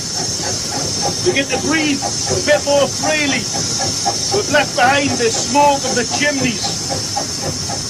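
A man talks with animation close by, over the engine noise.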